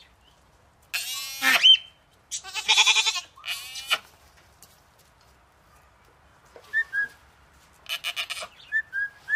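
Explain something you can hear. Goats bleat loudly close by.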